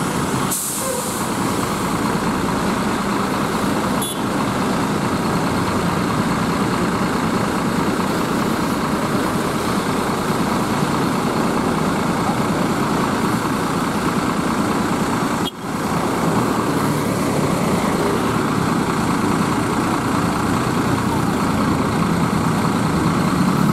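A diesel coach bus idles close by.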